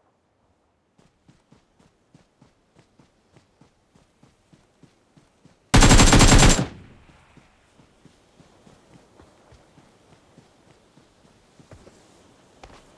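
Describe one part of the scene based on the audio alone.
Footsteps patter on grass at a running pace.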